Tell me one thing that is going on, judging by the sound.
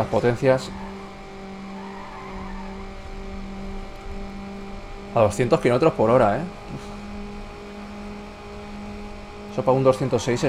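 A car engine roars at high speed, holding a steady droning pitch.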